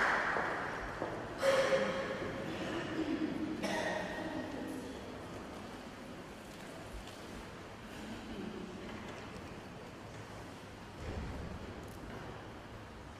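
A choir sings together in a large echoing hall.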